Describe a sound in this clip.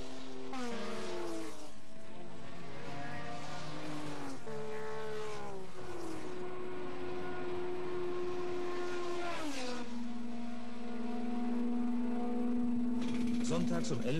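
A racing car engine roars past at high speed, its pitch dropping as it goes by.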